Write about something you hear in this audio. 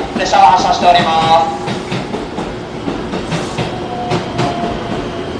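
A train rolls slowly along the rails.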